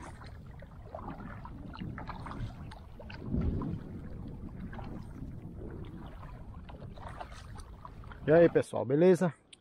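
A kayak paddle dips and splashes in calm water.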